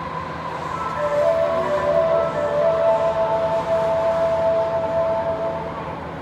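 Train brakes squeal in a steady high whine as the train stops.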